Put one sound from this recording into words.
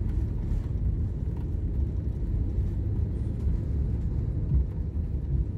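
A jet engine roars steadily, heard from inside an airliner cabin as it rolls along the runway.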